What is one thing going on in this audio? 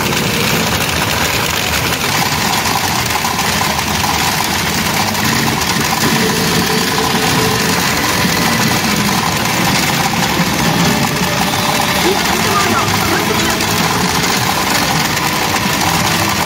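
Electronic music and sound effects play loudly from a gaming machine.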